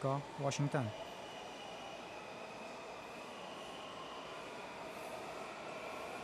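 A stopped train hums steadily in a large echoing hall.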